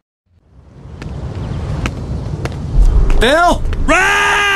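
Footsteps thud on the ground as a man walks.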